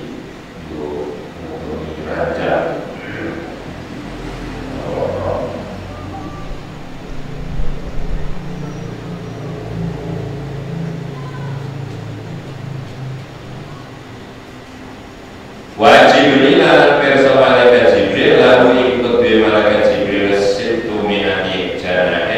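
A man speaks steadily through a microphone, as if reading out.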